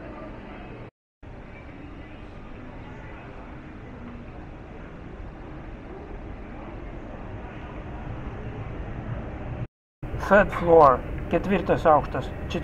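Voices murmur faintly in a busy indoor hall.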